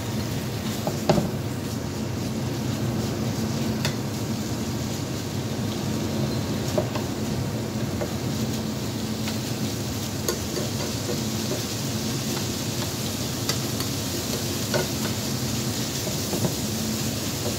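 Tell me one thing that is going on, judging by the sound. Food sizzles and fries in a hot pan.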